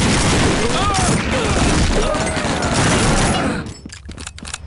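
A submachine gun fires loud rapid bursts.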